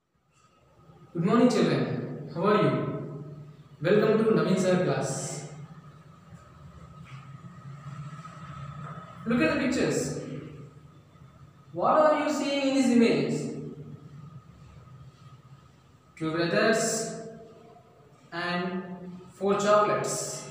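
A young man speaks calmly and clearly, as if teaching, close to a microphone.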